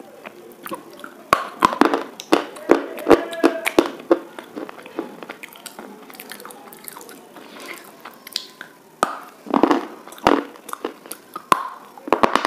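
A young woman bites into crisp food close to a microphone.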